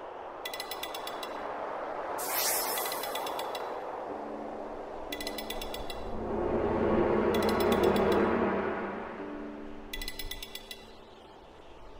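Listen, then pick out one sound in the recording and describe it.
Bright magical chimes ring out in short bursts.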